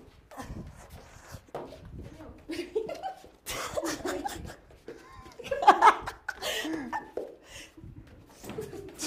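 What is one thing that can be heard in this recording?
Young women shout and laugh excitedly nearby.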